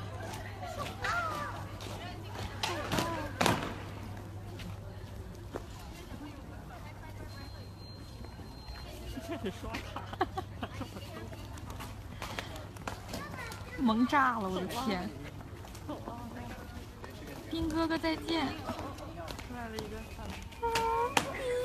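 A young child shouts excitedly.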